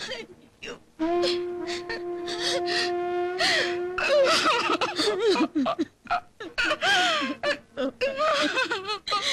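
Women wail and sob.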